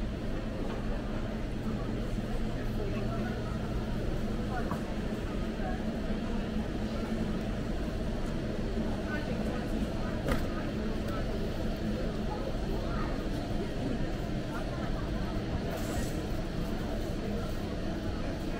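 Shopping cart wheels rattle across a hard floor.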